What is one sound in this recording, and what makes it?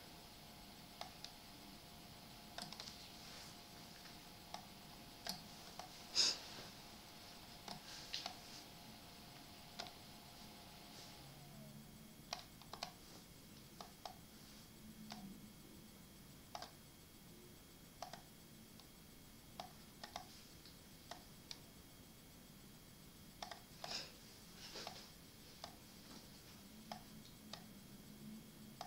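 Chess pieces click softly as they are moved in an online game.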